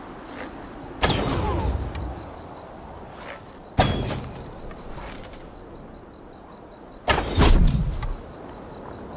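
A bowstring snaps as arrows are loosed.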